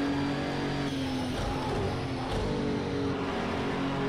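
A racing car engine slows sharply under braking for a corner.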